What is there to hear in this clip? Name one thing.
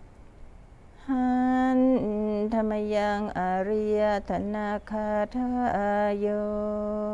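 A group of men chant together in a low, steady drone.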